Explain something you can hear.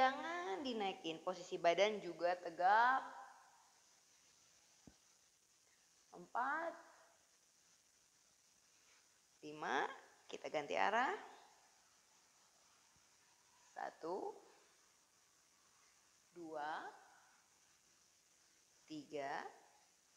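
A young woman speaks calmly in short phrases, with pauses between them.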